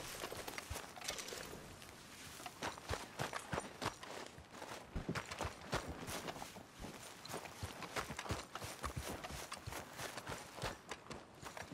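Footsteps crunch on grass and dirt.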